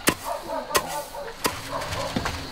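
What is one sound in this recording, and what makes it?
A wooden pestle pounds in a stone mortar with dull thuds.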